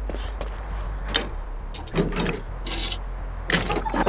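A chest lid creaks open.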